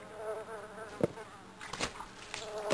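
A bin lid clatters open.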